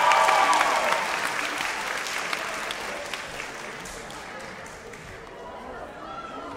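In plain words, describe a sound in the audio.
An audience claps and cheers loudly in a large hall, then the applause fades.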